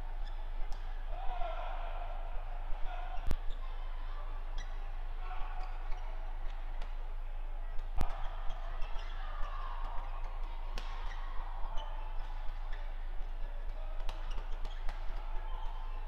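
Badminton rackets strike a shuttlecock back and forth in a large hall.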